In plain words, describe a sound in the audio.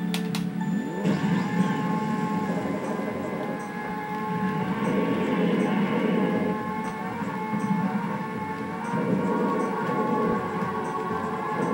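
A video game kart engine revs up and hums steadily.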